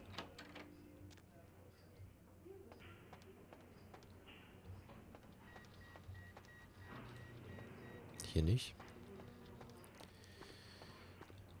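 Footsteps thud slowly on a hard floor in an echoing corridor.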